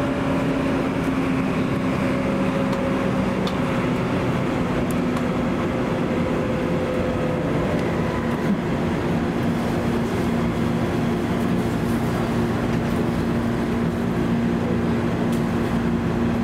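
A train rumbles steadily along the tracks, its motor humming.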